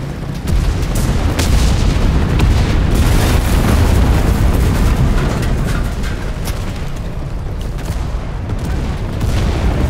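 A submachine gun fires in short bursts.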